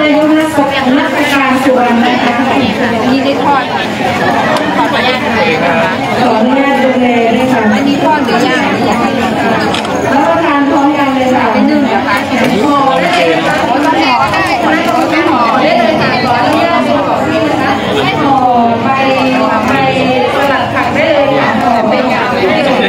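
A crowd of women chatters nearby outdoors.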